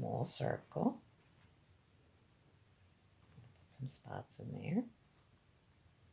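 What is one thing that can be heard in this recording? A felt-tip marker squeaks and scratches softly on paper.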